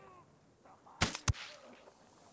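A rifle fires two quick, sharp shots.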